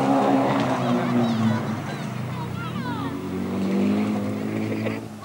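A rally car's engine roars loudly at high revs and shifts gears.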